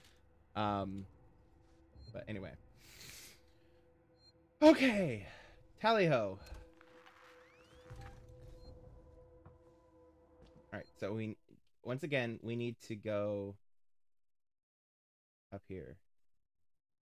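A young man talks with animation into a close microphone.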